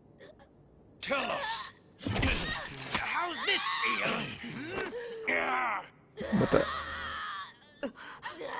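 A man speaks in a mocking, playful tone.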